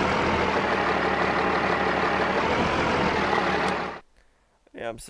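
A diesel truck engine rumbles loudly at idle.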